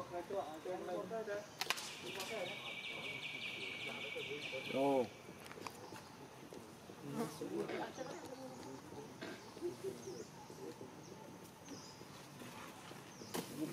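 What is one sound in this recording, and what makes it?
A young monkey squeaks and chatters close by.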